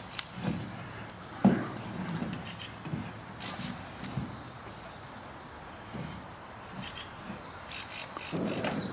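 A bear chews and gnaws noisily close by.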